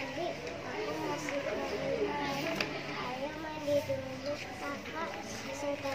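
A page of a book rustles as it is turned.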